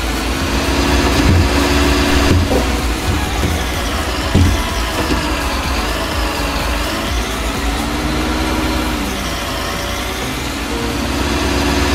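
A hydraulic crane arm whines as it moves.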